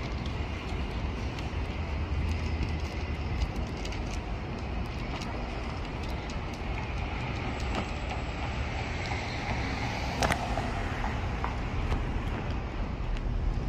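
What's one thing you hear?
A city bus engine idles and rumbles nearby.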